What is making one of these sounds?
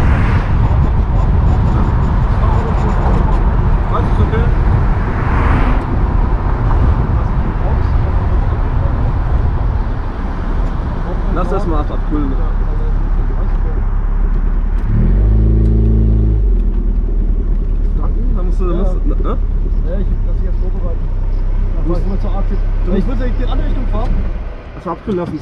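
A sports car engine rumbles deeply as the car drives along.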